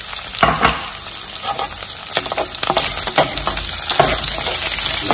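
A metal spatula scrapes and clinks against a metal pan.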